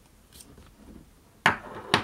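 A plastic ink pad scrapes and slides across a wooden table.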